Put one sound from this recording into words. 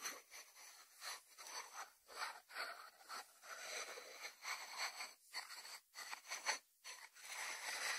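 A ceramic dish slides across a wooden board.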